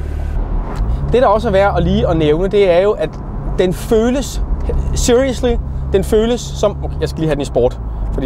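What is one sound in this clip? A man speaks with animation, close by, over wind and engine noise.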